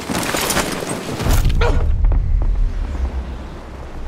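A body thuds heavily onto hard ground.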